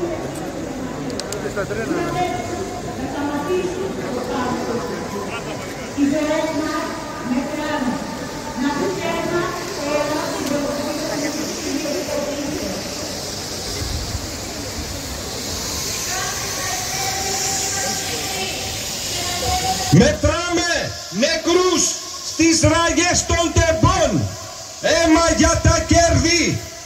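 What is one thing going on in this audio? A large crowd of protesters chants loudly outdoors.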